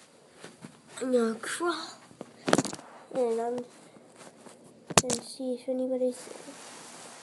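A child speaks close up in short, animated bursts.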